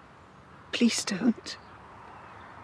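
An elderly woman speaks briefly and sternly, close by.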